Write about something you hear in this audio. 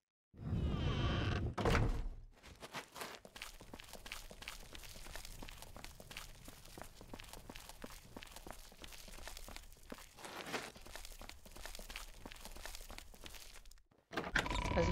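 Footsteps tread steadily on stone.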